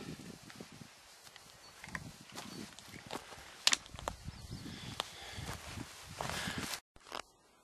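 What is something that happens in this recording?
Boots crunch and scuff on dry ground and twigs.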